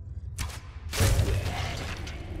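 An arrow strikes a body with a thud.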